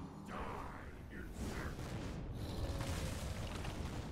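A fiery blast booms.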